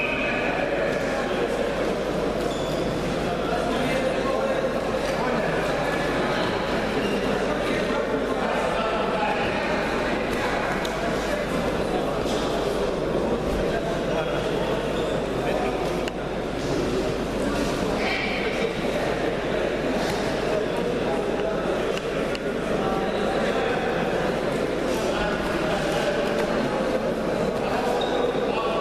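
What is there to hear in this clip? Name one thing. Wrestlers' feet thud and shuffle on a mat.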